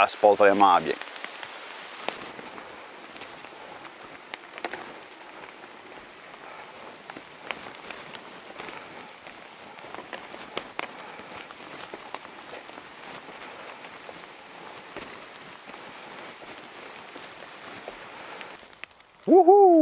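Footsteps crunch on a dirt trail and steps.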